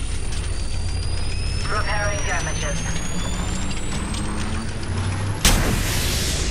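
An electric charging whine rises steadily in pitch, then ends with a sharp burst.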